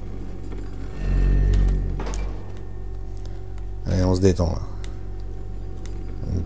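Small wheels of a heavy bin rumble and rattle across a hard floor.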